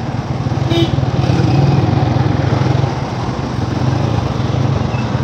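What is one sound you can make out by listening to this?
A car engine hums steadily from close by while driving.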